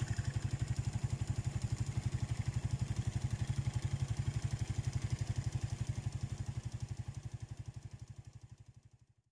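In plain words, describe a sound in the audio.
A motorbike engine putters steadily as the motorbike rides away, fading into the distance.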